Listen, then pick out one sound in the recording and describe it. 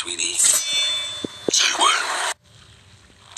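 A man speaks with a sneer.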